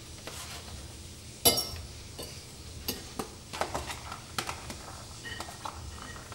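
Food drops onto a ceramic plate with soft taps.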